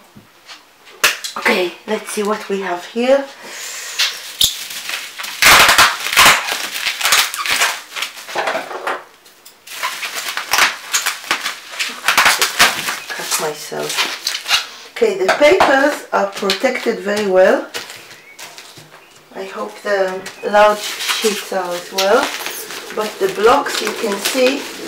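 Plastic bubble wrap crinkles and rustles as it is handled.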